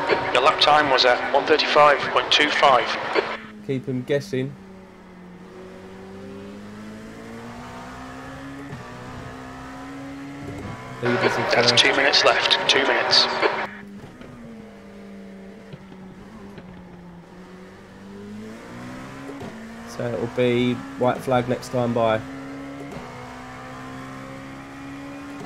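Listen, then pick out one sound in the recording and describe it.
A racing car engine drones and rises and falls in pitch.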